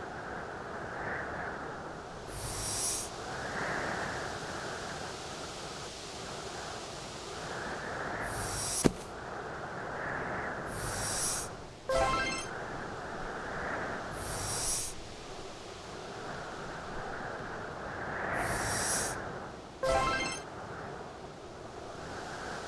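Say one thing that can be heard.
A heavy boulder scrapes as it slides across ice.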